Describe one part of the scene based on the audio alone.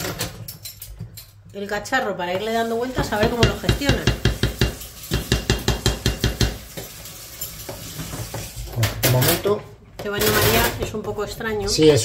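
A wooden spoon scrapes and stirs in a metal pot.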